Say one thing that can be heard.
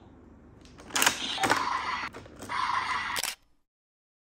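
Plastic parts of a toy click as hands handle it.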